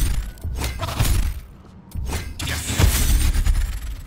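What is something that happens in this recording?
A magic spell bursts with a swirling whoosh.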